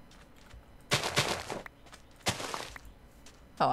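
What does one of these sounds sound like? A block of sand crumbles as it is dug out.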